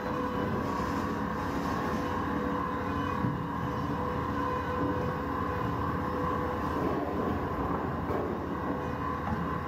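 Frozen fish blocks thump and slide on a metal table.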